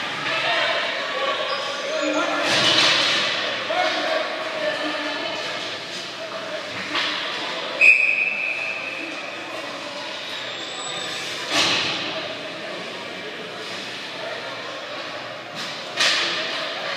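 Children shout and call out in a large echoing rink.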